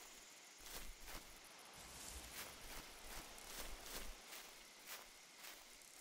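Footsteps crunch through grass and undergrowth at a steady walking pace.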